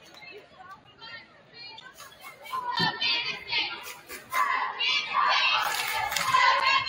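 A group of young women chant in unison.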